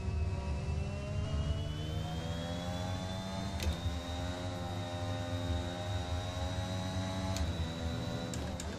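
A racing car engine whines and climbs in pitch, dropping briefly at each gear change.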